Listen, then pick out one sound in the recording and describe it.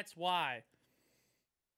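A man briefly speaks close to a microphone.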